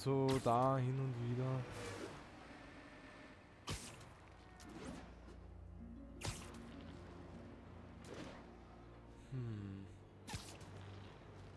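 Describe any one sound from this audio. Web lines shoot out with sharp swishes.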